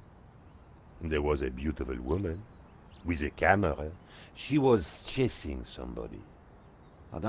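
A man with a deeper voice answers calmly, close to a microphone.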